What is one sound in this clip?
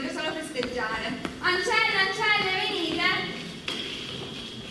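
A child speaks with animation on a stage, heard through a microphone in a large hall.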